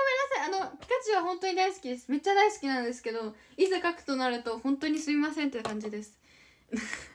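A young woman talks animatedly, close to the microphone.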